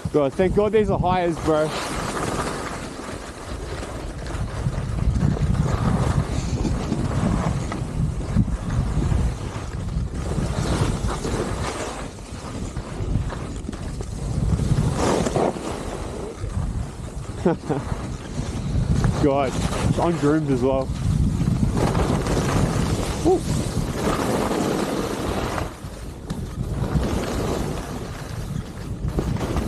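Skis hiss and scrape steadily over snow.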